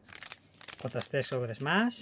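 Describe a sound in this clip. A foil wrapper crinkles in someone's hands.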